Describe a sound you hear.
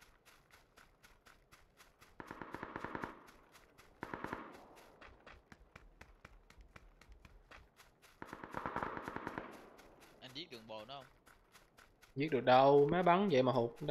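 Footsteps run quickly and steadily through grass.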